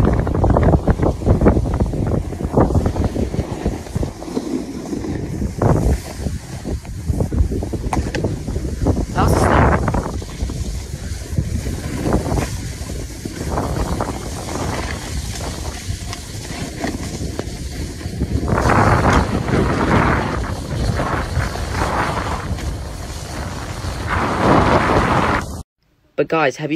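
Wind rushes loudly past a close microphone outdoors.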